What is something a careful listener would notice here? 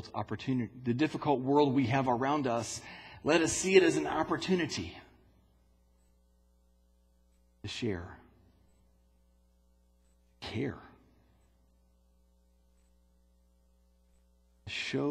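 A man speaks slowly through a microphone in an echoing hall, pausing between phrases.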